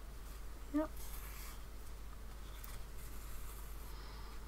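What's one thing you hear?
Thread rustles softly as it is pulled through cloth.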